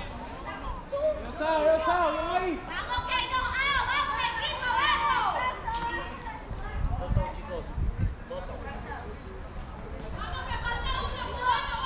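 Young men call out and chatter across an open field.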